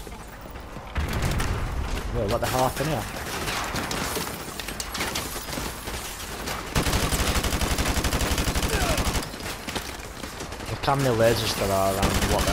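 Automatic gunfire rattles in rapid bursts.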